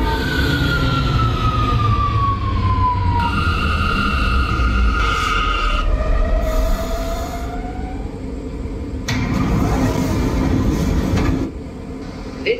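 A subway train's wheels rumble low on the tracks.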